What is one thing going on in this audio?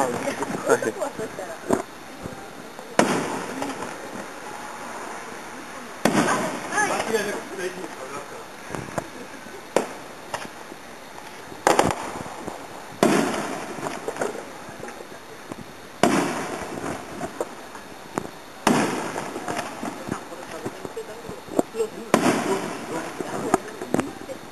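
Fireworks burst with loud booms that echo across open air.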